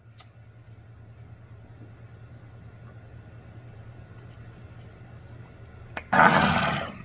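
A man gulps a drink from a bottle.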